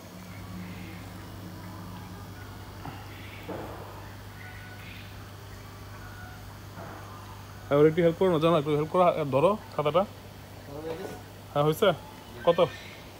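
Water sprinkles and patters onto a water surface.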